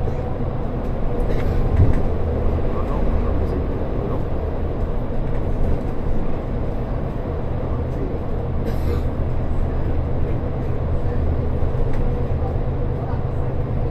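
A vehicle's engine rumbles steadily as it drives through an echoing tunnel.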